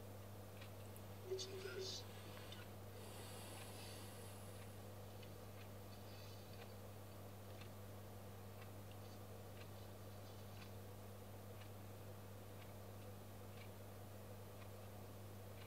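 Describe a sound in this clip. A man chews a sandwich.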